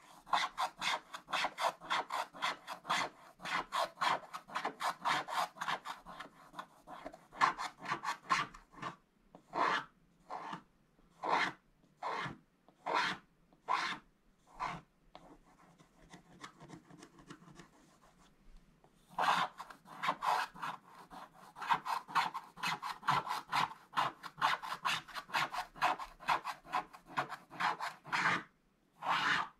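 A wooden stick scratches rapidly on a card.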